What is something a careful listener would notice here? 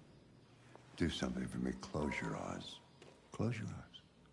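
An elderly man speaks calmly and quietly, close by.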